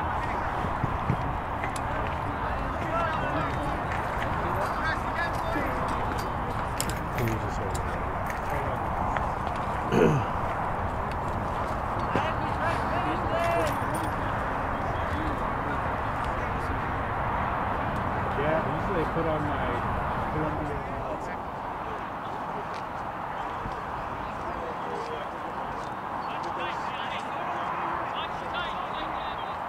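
Young men call and shout across an open field outdoors.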